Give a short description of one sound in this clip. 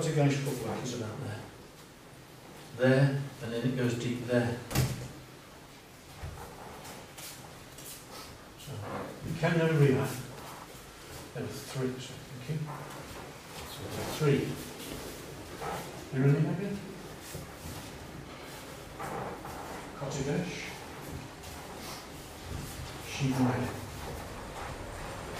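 An older man speaks calmly, explaining, in a slightly echoing room.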